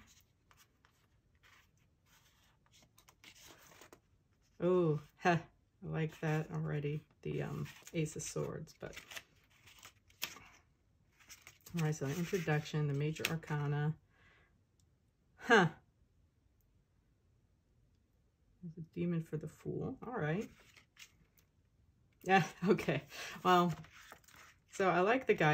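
Book pages rustle as they are turned by hand.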